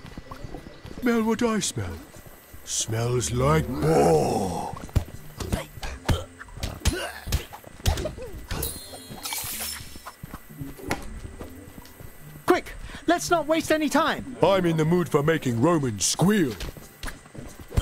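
A young boy talks with animation, close to a microphone.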